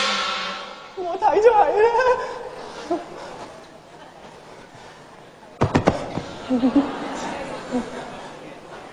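A man sings in a high, drawn-out voice on stage.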